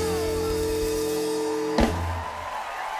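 Drums and cymbals play.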